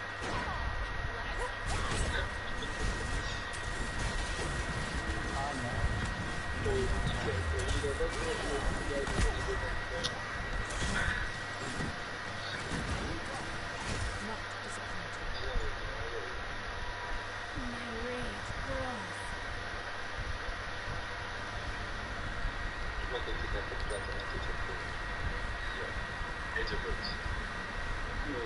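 Weapon blasts crack repeatedly in a video game.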